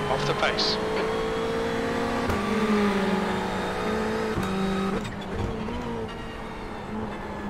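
A racing car engine drones steadily, with its pitch dropping sharply at each gear change.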